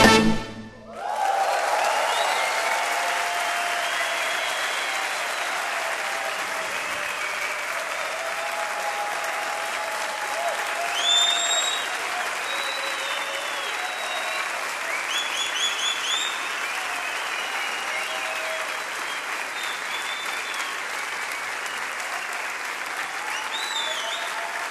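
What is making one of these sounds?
A large audience claps and cheers in a big hall.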